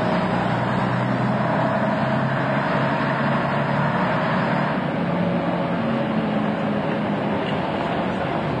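Buses idle and pull away along a busy street.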